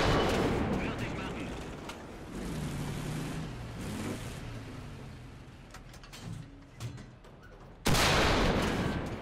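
A tank cannon fires with a loud, echoing boom.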